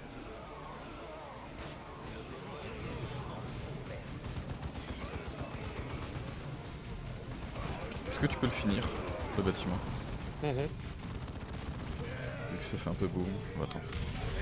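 Gunfire crackles and explosions thud in a battle.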